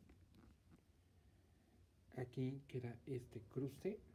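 A hand brushes softly over knitted wool.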